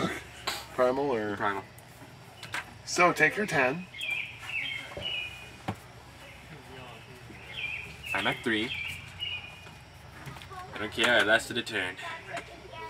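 A young man talks calmly nearby.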